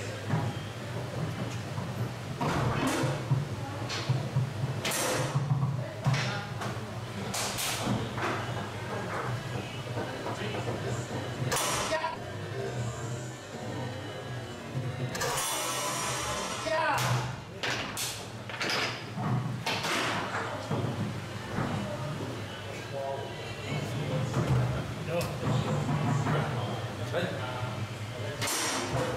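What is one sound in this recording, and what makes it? Foosball rods clatter and spin in their bearings.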